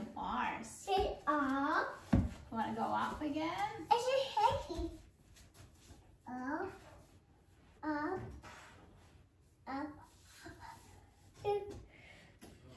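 A little girl babbles and squeals.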